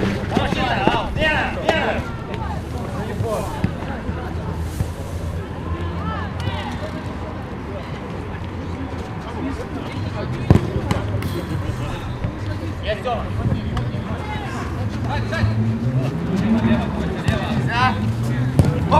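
Men shout to each other across an outdoor pitch.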